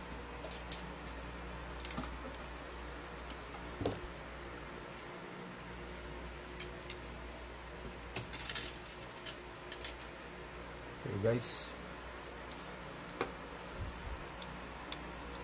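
Small clicks and taps sound as a man handles a thin rod with his hands.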